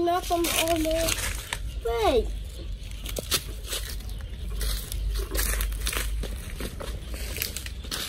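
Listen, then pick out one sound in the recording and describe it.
A plastic bottle crinkles as fingers handle it.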